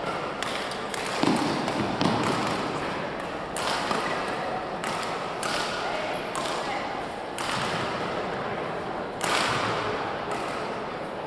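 A crowd of men and women talk and murmur in a large echoing hall.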